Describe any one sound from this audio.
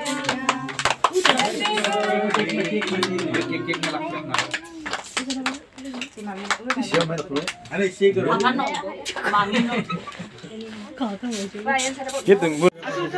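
Children clap their hands.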